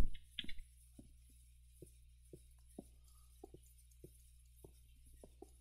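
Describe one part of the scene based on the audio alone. Footsteps thud on wooden planks at a steady walking pace.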